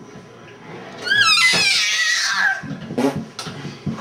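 A baby squeals with delight.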